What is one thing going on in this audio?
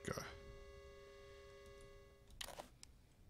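An electronic tone hums steadily, then cuts off.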